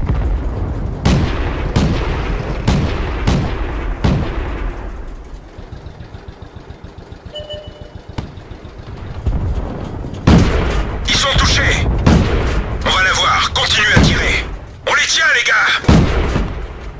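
A tank cannon fires with loud booms.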